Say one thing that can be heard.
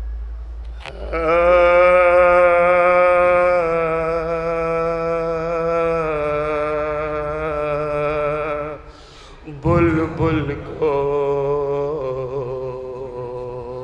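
A man chants loudly and mournfully into a microphone, his voice held in long sustained notes.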